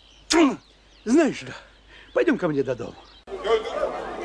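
Two men laugh heartily close by.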